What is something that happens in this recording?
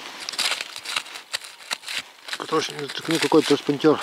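A hand brushes through dry leaves.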